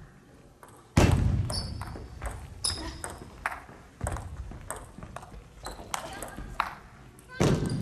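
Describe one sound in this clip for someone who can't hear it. A table tennis ball clicks back and forth between paddles and table in a large echoing hall.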